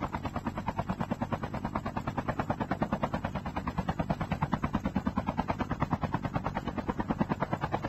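Helicopter rotor blades thump rapidly and steadily.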